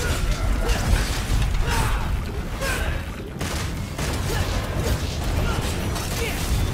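A huge beast rumbles as it lumbers along.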